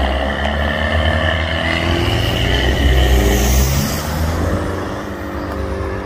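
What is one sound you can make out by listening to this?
Traffic passes on a road.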